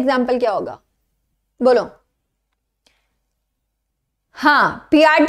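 A woman speaks clearly into a close microphone, in short bursts with pauses.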